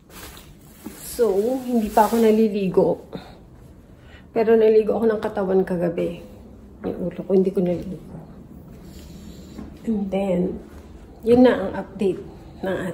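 A young woman talks casually, close to the microphone.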